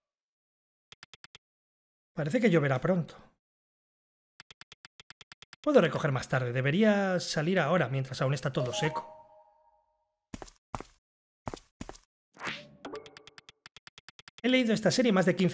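Soft rapid blips tick as dialogue text types out.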